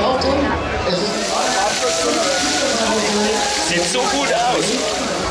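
Sausages sizzle on a hot griddle.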